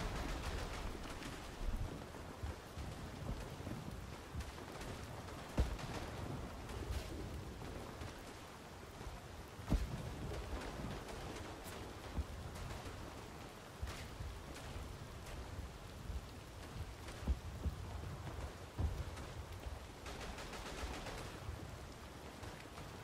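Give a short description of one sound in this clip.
Rain patters steadily all around.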